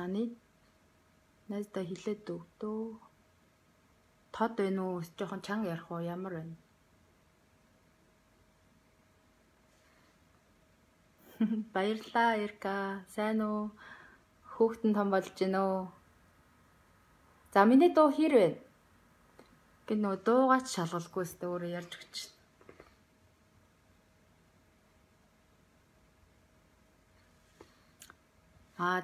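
A young woman speaks calmly and close up, in short phrases with pauses.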